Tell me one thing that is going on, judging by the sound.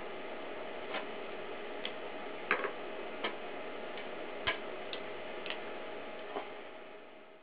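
Small metal and glass parts click and tap against a hard surface.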